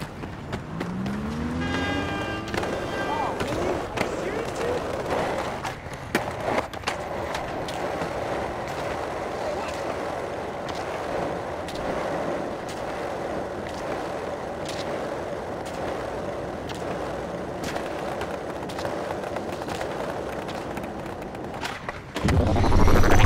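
Skateboard wheels roll over concrete and brick paving.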